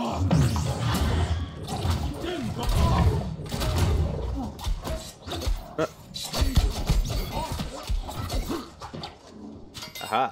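Magic blasts burst and crackle in a fight.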